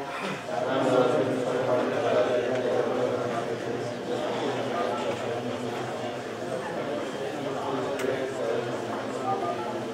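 A man reads aloud steadily, close by.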